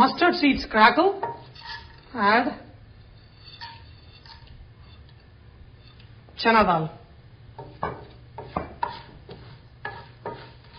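Hot oil sizzles in a pan.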